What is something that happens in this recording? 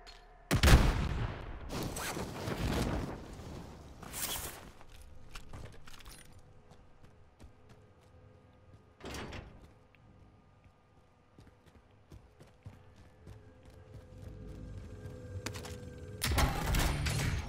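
Footsteps run quickly across hard ground.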